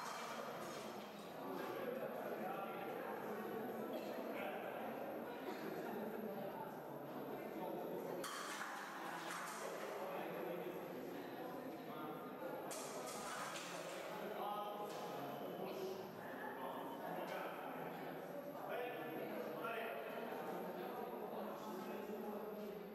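Men talk nearby in an echoing hall.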